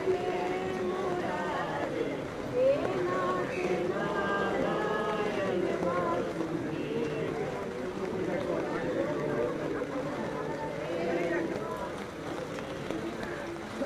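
A crowd of men and women murmur and talk close by.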